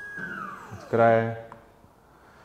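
A device beeps once at a tap.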